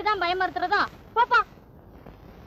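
A woman speaks sharply and loudly, close by.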